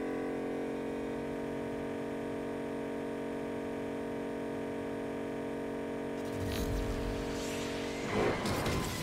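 A car engine hums steadily as the car speeds along.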